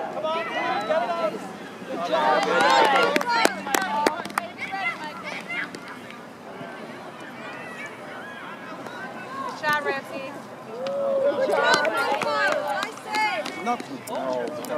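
Children and adults shout and cheer excitedly outdoors.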